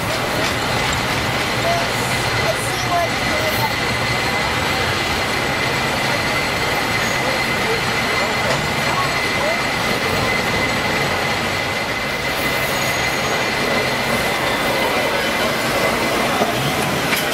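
Busy city street traffic hums steadily outdoors.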